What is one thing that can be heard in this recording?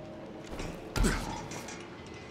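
A heavy body lands with a loud thud on a metal ledge.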